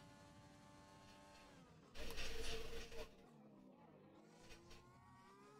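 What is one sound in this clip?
A racing car engine whines at high revs, dropping in pitch and then rising again.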